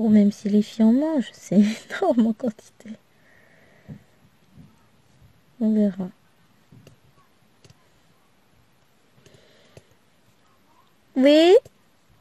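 A pen taps tiny plastic beads into place with soft clicks.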